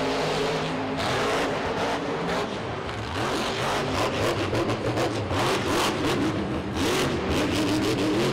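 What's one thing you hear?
Huge tyres thud down hard onto dirt after a jump.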